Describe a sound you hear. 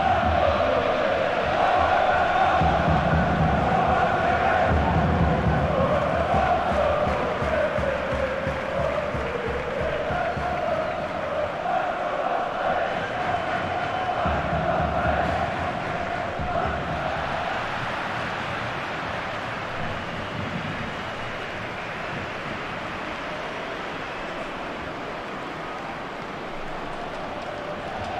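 A large stadium crowd chants and roars, slowly fading.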